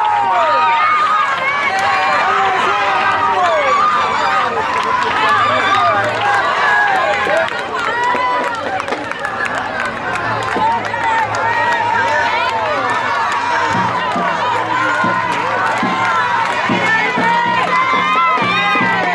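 A crowd of children and women cheer and scream with excitement outdoors.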